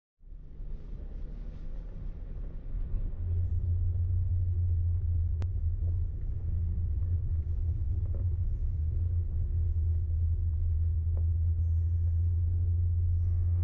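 A vehicle engine rumbles low and steady as it drives slowly.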